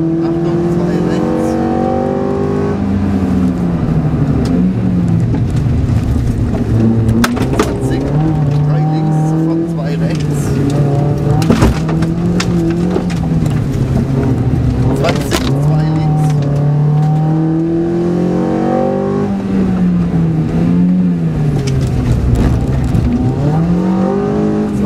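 A car engine revs hard, rising and falling as gears change.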